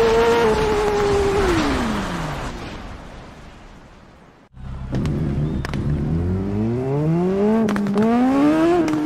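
A motorcycle engine winds down to near silence, then revs back up.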